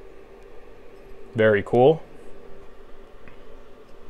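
A heavy coin is set down on a table with a soft clunk.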